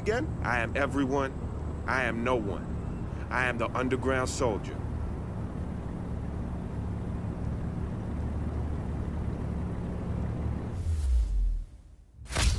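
Two car engines idle with a low, steady rumble.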